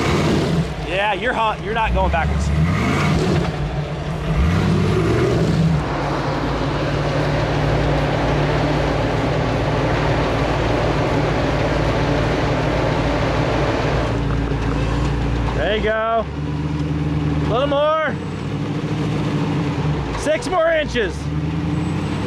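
An engine revs up sharply several times.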